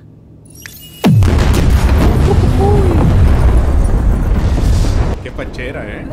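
A huge explosion booms suddenly, then rumbles and roars loudly before dying down.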